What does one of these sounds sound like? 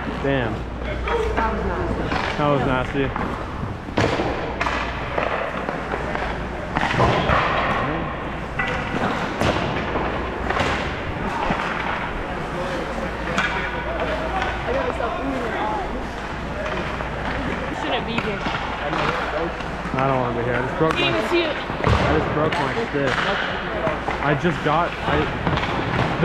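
Skate blades scrape and hiss on ice.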